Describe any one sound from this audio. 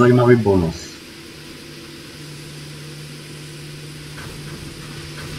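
A train carriage hums with a low, steady drone.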